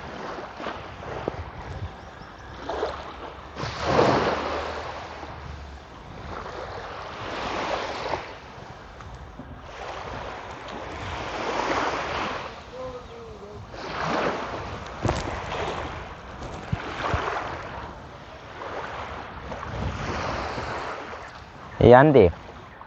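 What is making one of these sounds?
Small waves wash gently onto the shore, rising and falling every few seconds.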